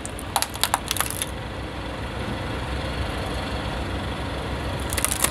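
A car tyre rolls slowly over rough asphalt.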